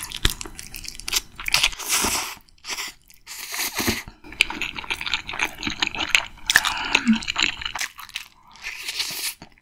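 A young woman chews and slurps food loudly and close up.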